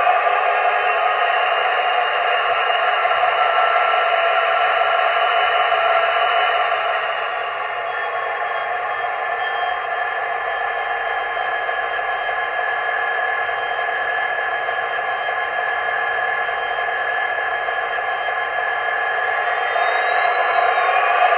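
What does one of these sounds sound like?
A small loudspeaker plays a tinny diesel engine rumble that drops in pitch and then slowly builds again.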